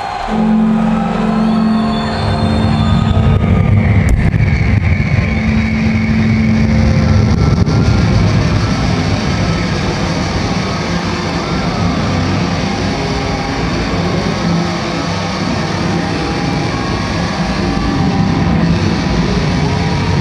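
Loud live music plays through big loudspeakers in a large open space.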